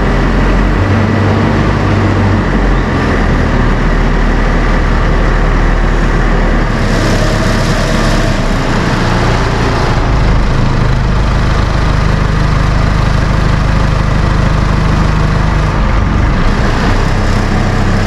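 A heavy diesel engine rumbles and revs nearby.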